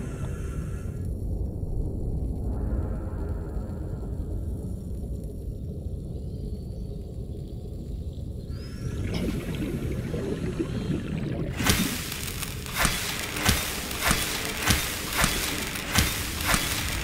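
A low underwater rumble hums steadily.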